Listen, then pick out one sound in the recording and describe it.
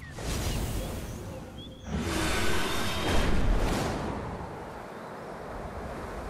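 Large wings beat in flight.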